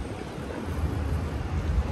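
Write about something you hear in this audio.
A car drives past.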